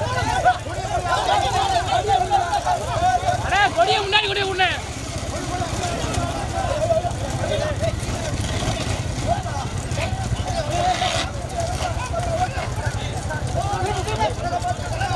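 Wooden bullock cart wheels roll on asphalt.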